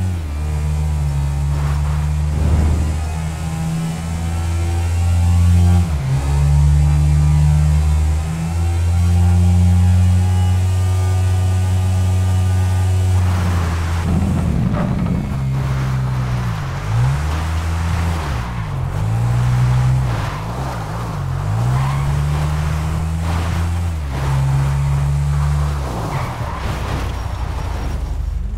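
A motorcycle engine drones steadily and rises and falls as it shifts gears.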